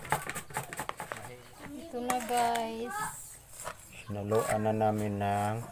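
A spoon stirs and squelches through grated food in a bowl.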